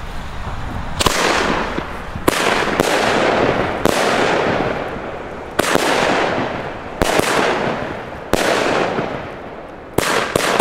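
Fireworks bang loudly in the sky, one after another.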